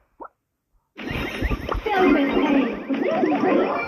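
Video game shots and blasts crackle loudly.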